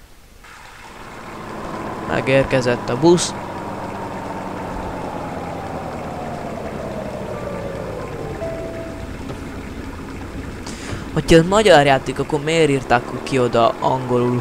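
A bus engine hums as a bus drives slowly along a road.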